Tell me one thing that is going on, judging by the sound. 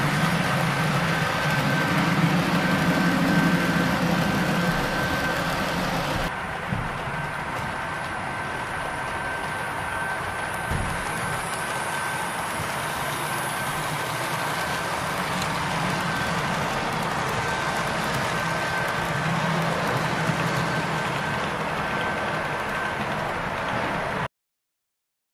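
A model train rolls along its track with a steady, rattling hum.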